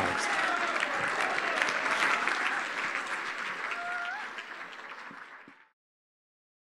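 An audience applauds loudly in a large hall and then fades away.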